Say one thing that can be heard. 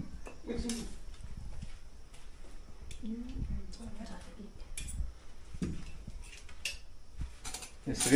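A metal spoon clinks against plates.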